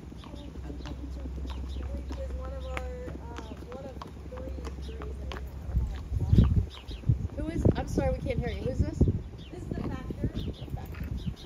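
Hooves clop on pavement as a horse walks.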